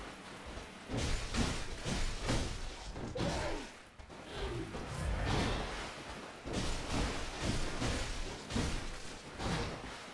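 Blades slash and strike flesh in a fight.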